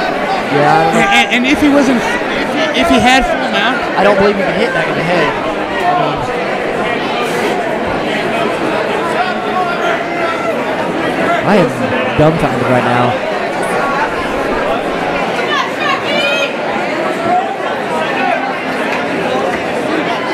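A crowd cheers and shouts loudly in an echoing arena.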